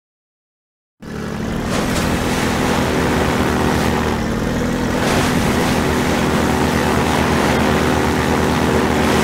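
An engine hums steadily as a small vehicle drives along.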